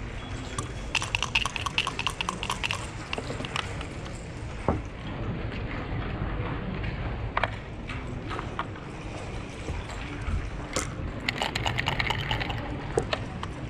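Dice rattle in a dice cup and tumble onto a board.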